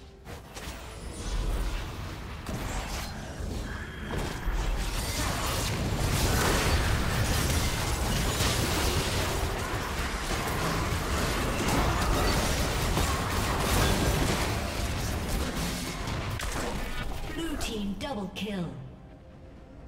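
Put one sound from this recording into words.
Game spell effects and weapon hits crash and whoosh in a busy fight.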